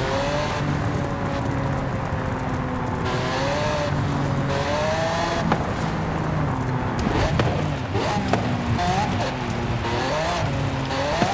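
A car engine roars and changes pitch as it speeds up and shifts gears.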